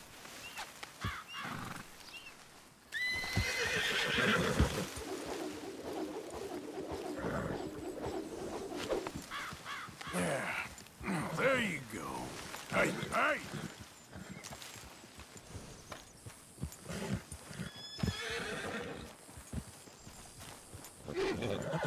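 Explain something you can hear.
Horse hooves thud steadily on grass.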